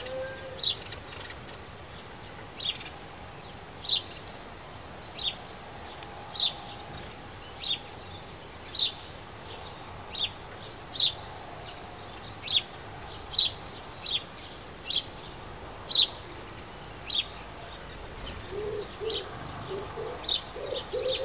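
Small birds chirp close by in short, sharp calls at a steady pace.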